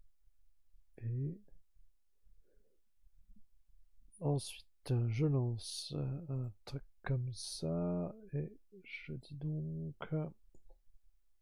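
A middle-aged man talks calmly and close to a microphone.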